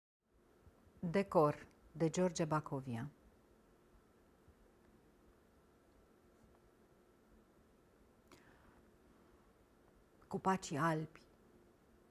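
A middle-aged woman speaks calmly and close to a microphone, with long pauses.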